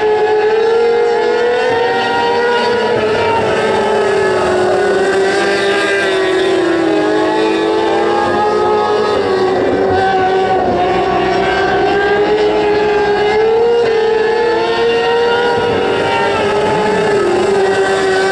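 Several racing car engines roar loudly, rising and falling in pitch as they speed around a dirt track.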